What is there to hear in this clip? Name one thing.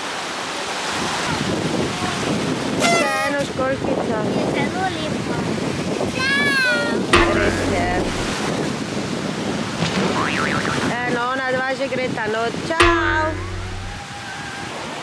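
Waves wash onto a beach, with a steady rushing.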